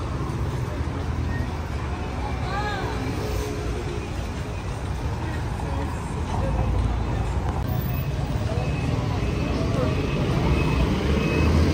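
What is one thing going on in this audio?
People chatter in the distance.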